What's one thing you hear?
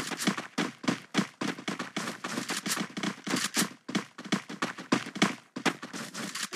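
Footsteps thud quickly on grass and dirt.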